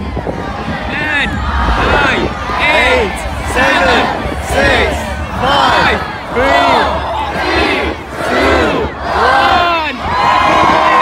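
A large crowd chants a countdown together in loud unison outdoors.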